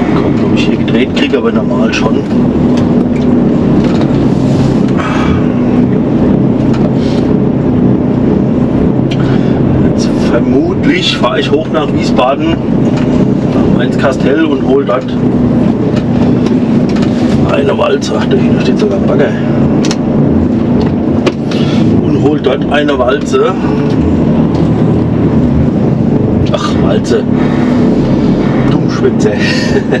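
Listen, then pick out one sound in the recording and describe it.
A diesel heavy-haul truck engine drones, heard from inside the cab.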